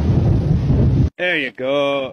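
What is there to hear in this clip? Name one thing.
A large bird splashes its wings in water.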